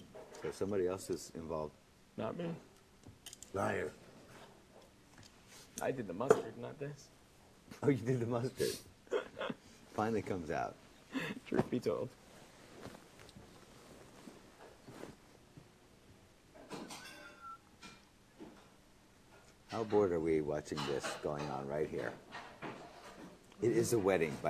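A young man speaks calmly and close by, with pauses.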